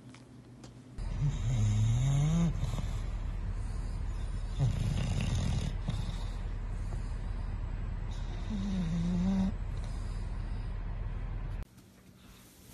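A sleeping bulldog snores.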